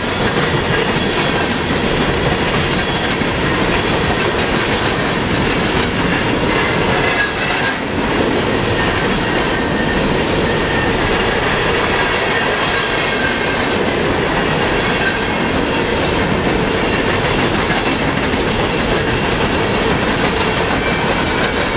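A long freight train rumbles past close by at speed.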